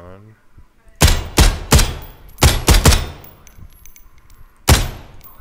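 A rifle fires several loud, sharp shots in an echoing indoor range.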